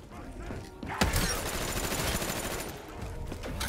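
An electric weapon fires with a loud crackling zap.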